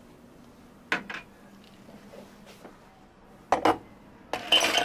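Glasses knock down onto a hard counter.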